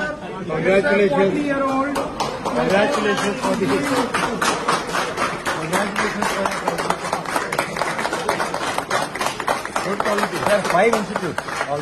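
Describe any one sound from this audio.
A crowd of men and women chatter and call out loudly close by.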